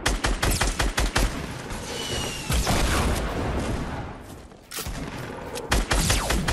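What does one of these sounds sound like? Wooden building pieces knock into place in a game.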